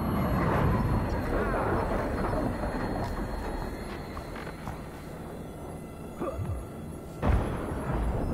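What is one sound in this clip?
A gun fires with sharp bangs.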